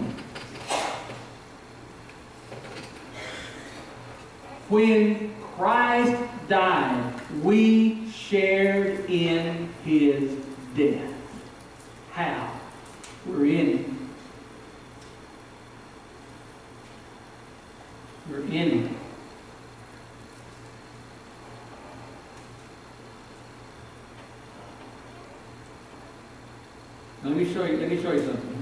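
A middle-aged man preaches with animation through a microphone in an echoing hall, with long pauses.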